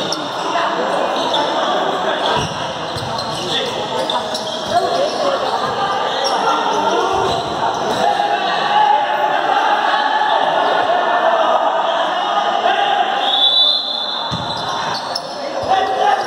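A ball thuds as players kick it.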